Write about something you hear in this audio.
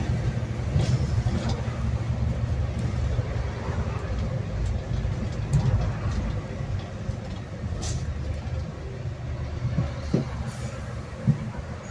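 Cars pass by on the road.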